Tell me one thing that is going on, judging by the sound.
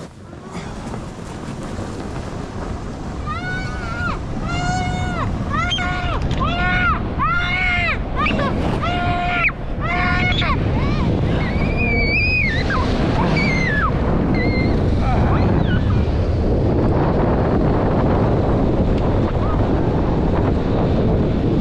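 A snow tube hisses and rumbles as it slides fast down an icy track.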